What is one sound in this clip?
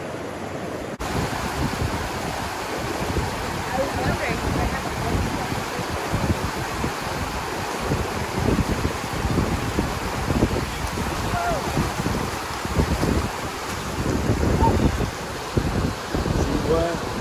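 A rushing river roars loudly.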